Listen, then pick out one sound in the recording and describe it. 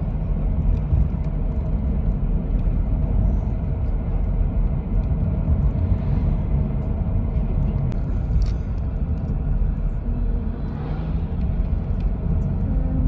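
A vehicle's engine rumbles steadily from inside as it drives along.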